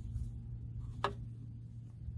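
A metal switch lever clicks as it is turned.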